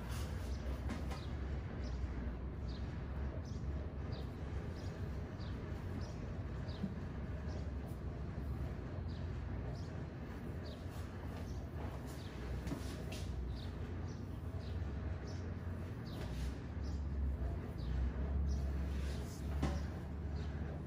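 Hands rub and scratch through hair close up.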